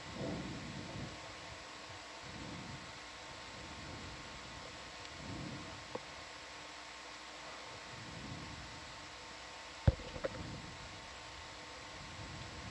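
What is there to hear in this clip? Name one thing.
Water rumbles and murmurs softly, heard from underwater.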